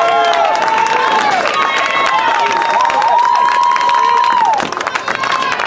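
A group of young players shout and cheer together outdoors.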